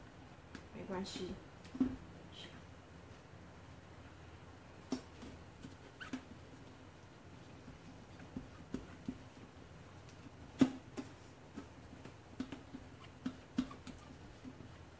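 A spatula scrapes and taps against a metal bowl.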